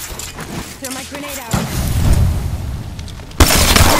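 A grenade bursts with a loud bang.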